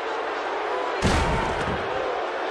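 A heavy body crashes down hard onto a surface.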